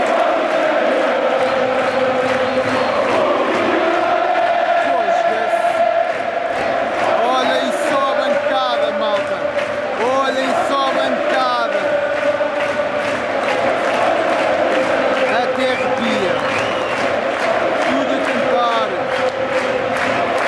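A huge stadium crowd sings loudly together in a large echoing space.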